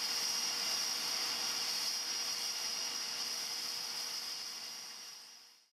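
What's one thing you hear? A parked aircraft's engine whines steadily, then fades away.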